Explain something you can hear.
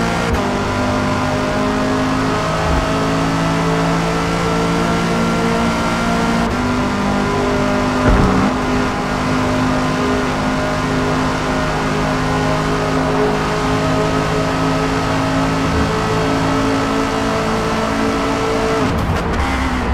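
A racing car engine roars at high revs, shifting up through the gears.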